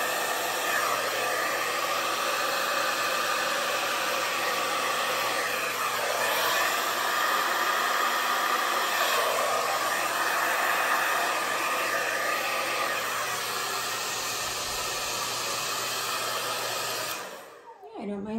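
A heat gun blows with a steady loud whoosh.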